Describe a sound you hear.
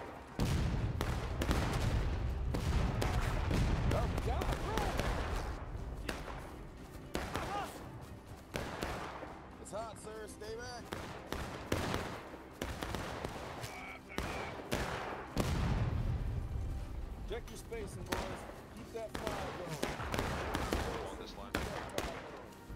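Musket shots crack and pop across a battlefield.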